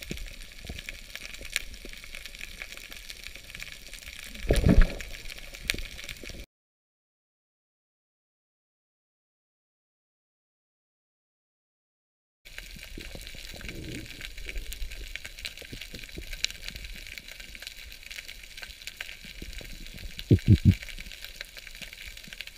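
Water hisses and crackles faintly all around, heard underwater.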